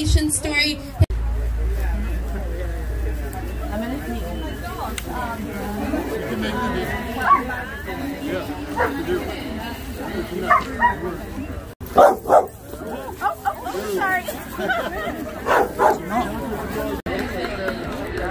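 Men and women chat nearby outdoors in a small crowd.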